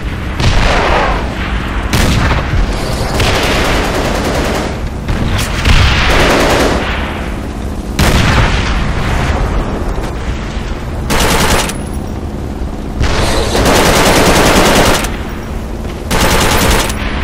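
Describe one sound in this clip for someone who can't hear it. A machine gun fires loud rapid bursts.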